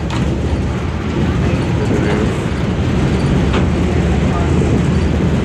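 Strong wind buffets loudly outdoors.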